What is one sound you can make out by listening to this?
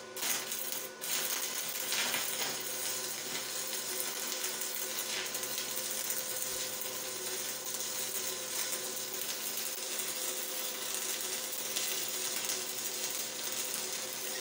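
An electric welding arc crackles and sizzles steadily.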